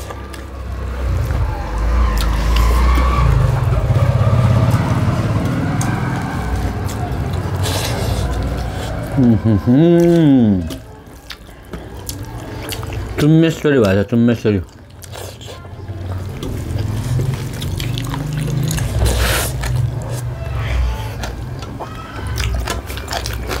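Two people chew and smack their lips loudly, close to a microphone.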